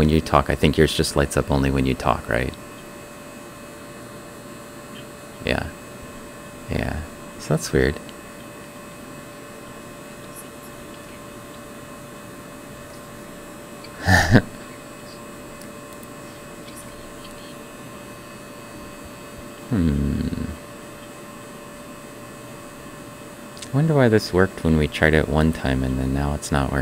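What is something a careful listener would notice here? A man speaks calmly into a close microphone, with pauses.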